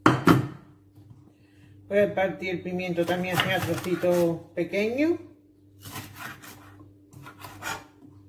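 A chef's knife cuts through a green pepper.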